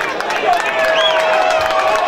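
Young men shout and cheer in celebration outdoors.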